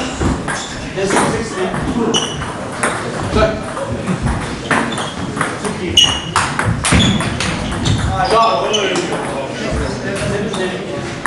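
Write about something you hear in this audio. A ping-pong ball clicks back and forth on paddles and a table in an echoing hall.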